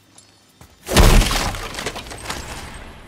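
A heavy chest bursts open with a loud rush.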